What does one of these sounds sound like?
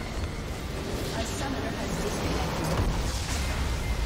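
A huge structure explodes with a deep, rumbling boom.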